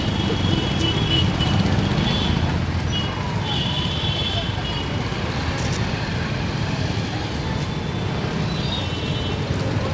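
Traffic rumbles along a street.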